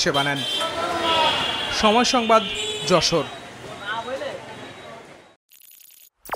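A busy street bustles with passing people and cycle rickshaws.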